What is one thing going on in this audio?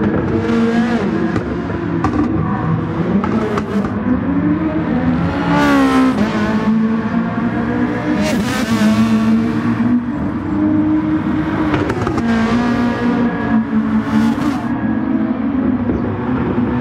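A racing car engine roars loudly, rising and falling in pitch as it shifts gears.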